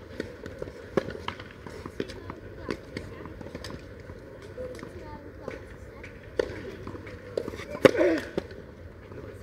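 Tennis balls are struck with rackets in a rally outdoors.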